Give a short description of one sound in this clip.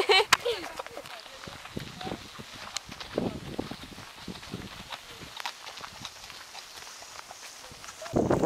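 Horse hooves clop softly on a gravel path.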